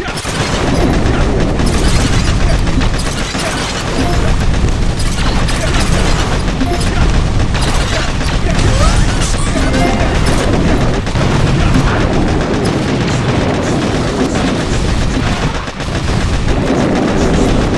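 Cartoon gunfire and explosions rattle through a mobile battle game.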